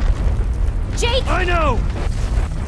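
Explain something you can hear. A young man shouts back loudly.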